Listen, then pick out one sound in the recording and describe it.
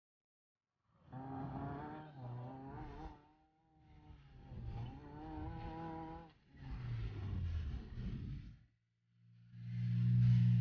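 A car engine revs hard in repeated bursts, rising and falling in pitch.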